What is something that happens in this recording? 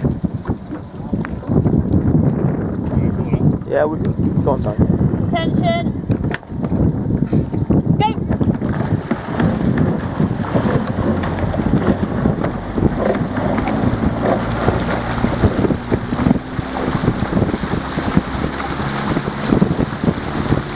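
Wind buffets loudly across the water outdoors.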